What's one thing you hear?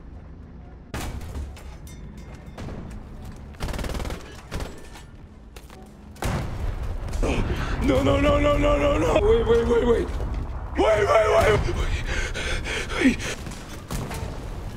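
Cannon shots boom sharply.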